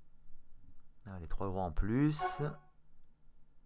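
A game plays a short rising jingle.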